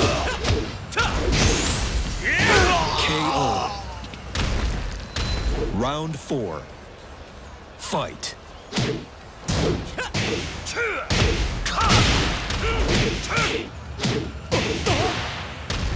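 Punches and kicks land with heavy, sharp thuds.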